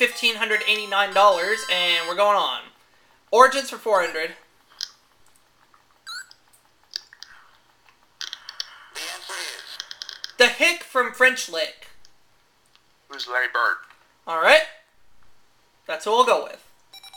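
A video game plays short electronic beeps and chimes.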